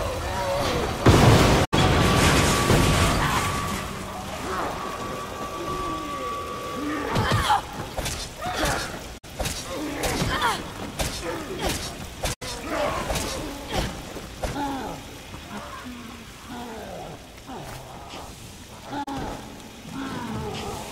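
Flames roar from a flamethrower.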